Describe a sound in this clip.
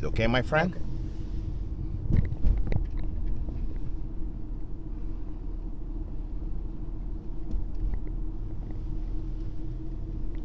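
A car's engine hums and its tyres rumble steadily on the road, heard from inside the car.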